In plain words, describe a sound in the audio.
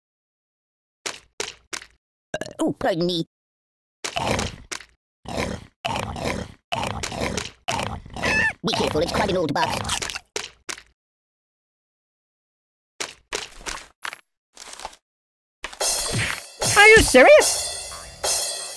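Cartoon thuds and squeaks sound as a toy is bitten and thrown about.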